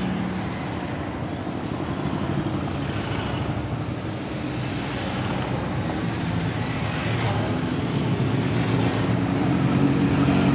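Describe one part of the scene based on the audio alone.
A column of motorcycles rides past at low speed, engines rumbling.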